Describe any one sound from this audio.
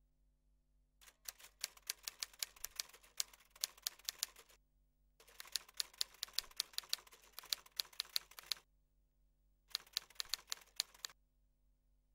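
Percussion rattles and clicks in a fast, bursting rhythm.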